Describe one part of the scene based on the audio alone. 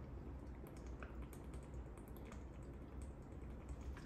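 A man gulps water from a plastic bottle.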